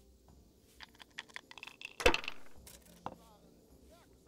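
Dice rattle in a wooden cup and clatter onto a table.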